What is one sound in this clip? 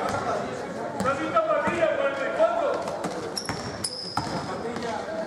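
A basketball bounces on the hard floor.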